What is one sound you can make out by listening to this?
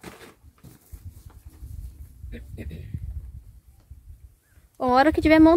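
Tent fabric rustles as it is handled.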